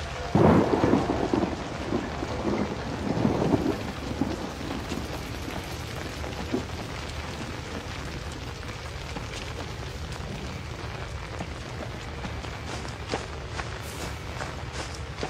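Footsteps crunch through wet undergrowth.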